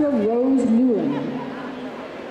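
A woman calls out loudly to a dog.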